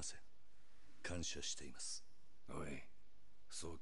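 A younger man answers quietly and respectfully.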